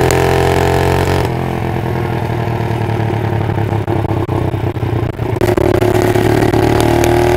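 A single-cylinder four-stroke minibike engine accelerates away.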